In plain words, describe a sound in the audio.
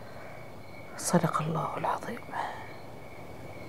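An elderly woman speaks briefly.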